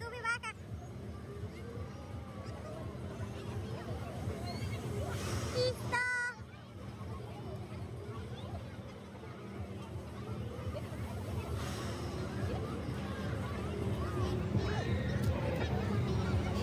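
A fairground ride whirs and rumbles steadily.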